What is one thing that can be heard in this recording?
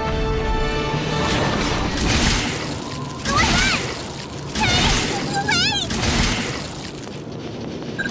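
Heavy blows thud and slash against a creature.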